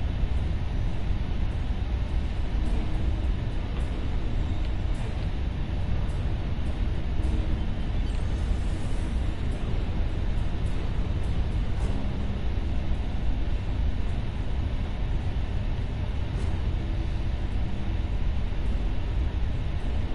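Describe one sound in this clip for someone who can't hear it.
A spacecraft engine roars with a steady low rumble.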